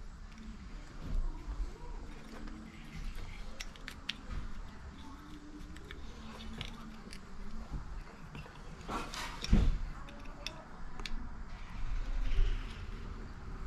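Small plastic and metal parts click and tick as they are fitted together by hand.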